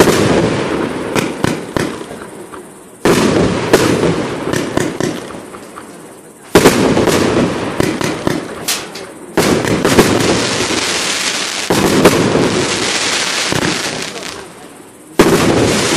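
Sparks crackle and pop after each firework bursts.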